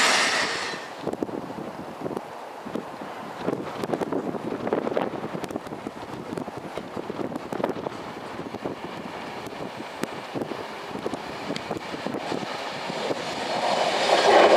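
A train approaches with a low rumble.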